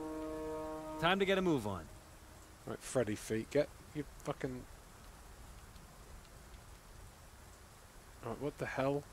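A man talks casually and with animation, close to a microphone.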